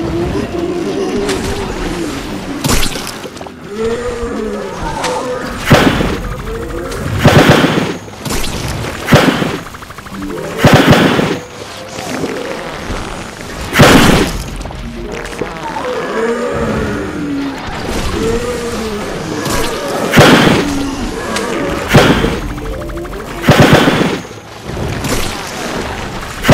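Game fireballs whoosh and explode in loud bursts.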